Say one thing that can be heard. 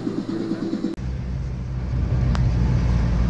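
A car engine rumbles low while driving on a road.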